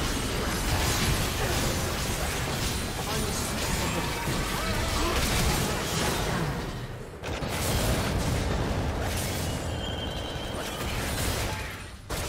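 Fantasy battle sound effects of spells blasting and weapons striking clash rapidly.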